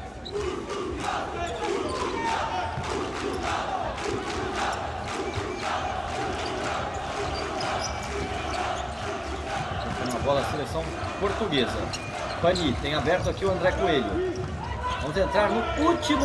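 A futsal ball is kicked on a hard court.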